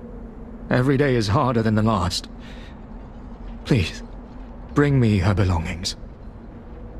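A man speaks calmly and wearily, close by.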